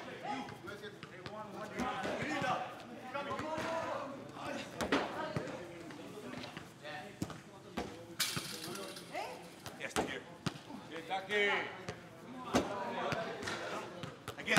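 A football thumps on a curved table.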